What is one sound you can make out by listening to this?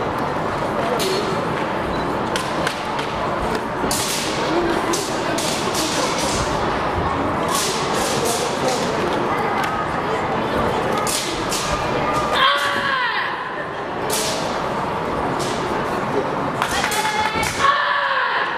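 A karate uniform snaps sharply with quick punches and kicks.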